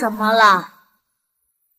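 A young man speaks with surprise.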